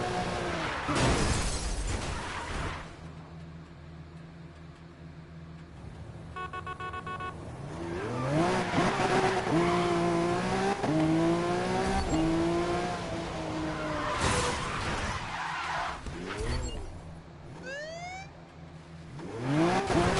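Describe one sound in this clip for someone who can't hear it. A car engine revs high and roars through gear changes.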